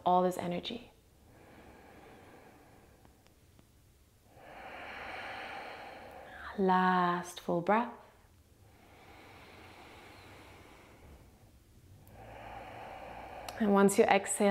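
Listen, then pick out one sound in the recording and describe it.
A young woman breathes in and out deeply and slowly.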